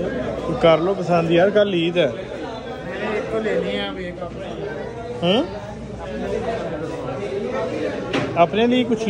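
A young man speaks close by with animation.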